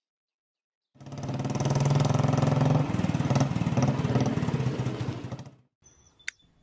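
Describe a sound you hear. A motor scooter engine runs and revs up close.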